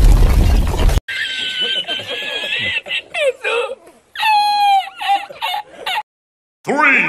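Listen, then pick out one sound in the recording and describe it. A middle-aged man laughs loudly and uncontrollably.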